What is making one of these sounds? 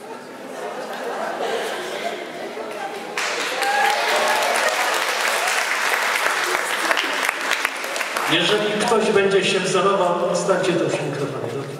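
An elderly man speaks calmly through a microphone and loudspeakers in an echoing hall.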